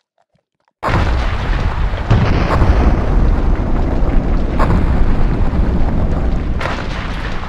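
A volcano erupts with a deep, rumbling roar.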